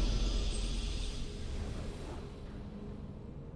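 A triumphant game fanfare rings out and fades away.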